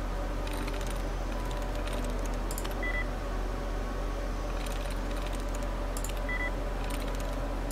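Computer terminal keys click and chatter in quick bursts.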